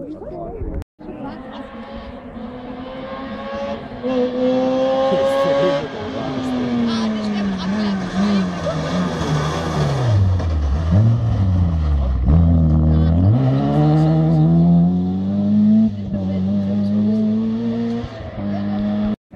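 A rally car engine roars closer, revs hard through the gears and fades away into the distance.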